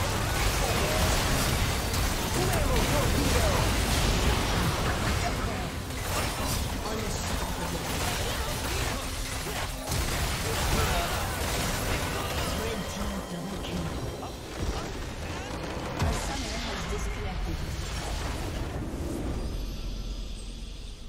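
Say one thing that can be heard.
Magical blasts and impacts crackle and boom in quick succession.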